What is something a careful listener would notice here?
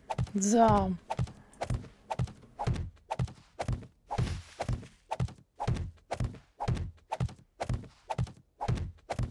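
Stone blocks thud into place one after another in a quick, steady rhythm.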